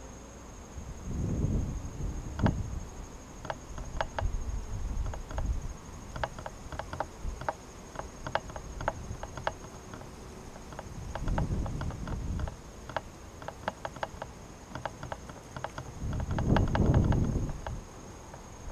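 Wind gusts outdoors, rumbling low.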